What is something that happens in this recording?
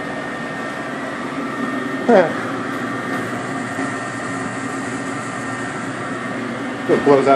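A furnace motor hums steadily.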